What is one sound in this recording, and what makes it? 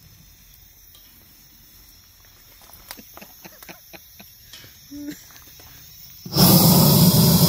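Burning wood crackles softly.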